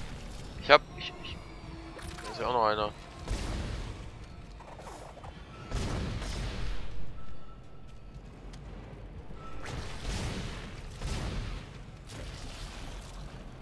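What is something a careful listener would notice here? A weapon fires sharp shots.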